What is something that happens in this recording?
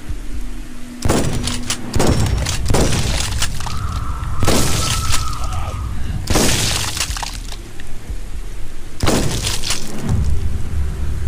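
A gun fires loud shots in bursts.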